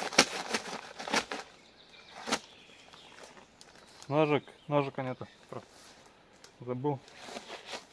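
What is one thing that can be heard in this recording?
A plastic tarp rustles and crinkles as it is handled.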